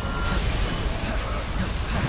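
An energy beam blasts with a loud crackling roar.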